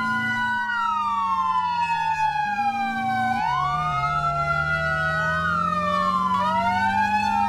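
A fire truck's engine drones as it drives.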